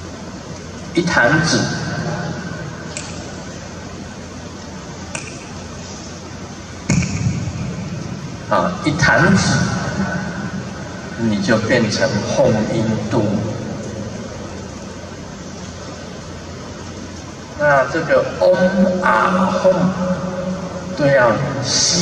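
An elderly man speaks with animation into a microphone, heard through loudspeakers with an echo.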